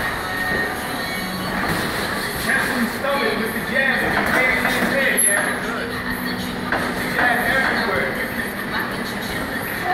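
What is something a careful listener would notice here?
Sneakers squeak and thud on a boxing ring canvas.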